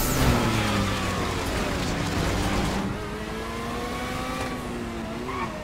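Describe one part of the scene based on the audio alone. A racing car engine roars at high revs and climbs in pitch as it speeds up.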